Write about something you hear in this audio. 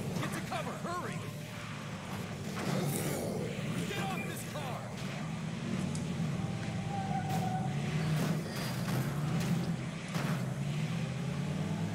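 A van engine drones steadily.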